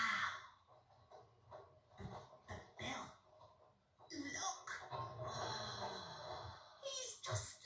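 A television plays sound in a small room.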